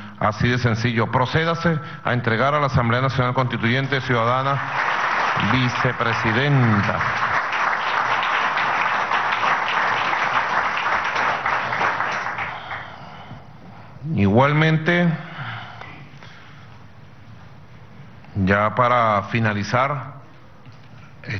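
A man speaks into a microphone in a calm, steady voice.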